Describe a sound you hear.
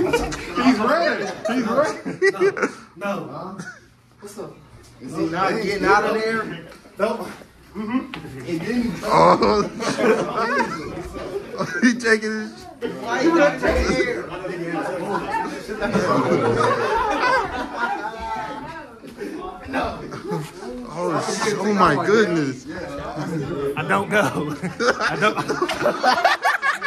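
Young men shout and talk excitedly nearby in a small room.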